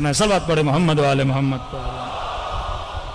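A man chants in a melodic voice into a microphone, heard through a loudspeaker.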